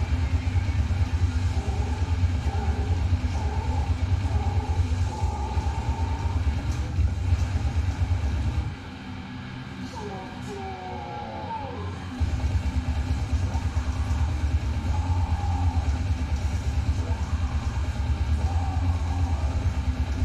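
Fast electronic dance music with a heavy beat plays, pausing briefly in the middle.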